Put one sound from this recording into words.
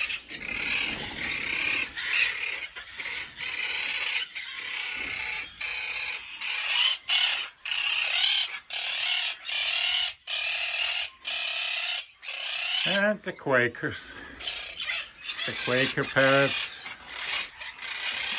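Many small birds chirp and twitter busily all around, close by.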